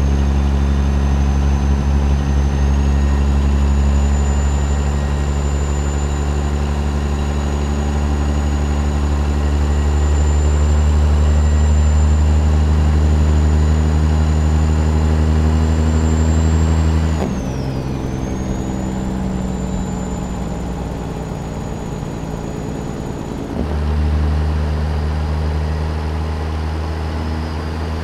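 A heavy truck engine drones steadily, dropping lower for a few seconds before pulling hard again.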